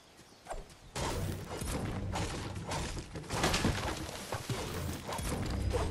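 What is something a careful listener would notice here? A pickaxe strikes a tree trunk repeatedly with sharp knocks.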